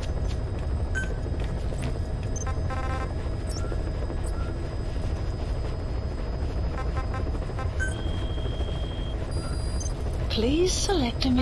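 Short electronic menu beeps and blips sound now and then.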